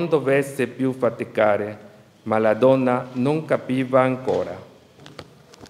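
A man chants a prayer through a microphone in an echoing stone hall.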